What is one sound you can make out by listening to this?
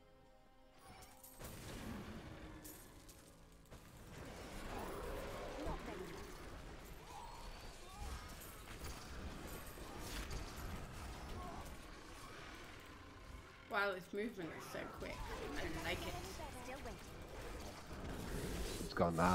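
Fiery spell blasts and combat clashes sound from a game.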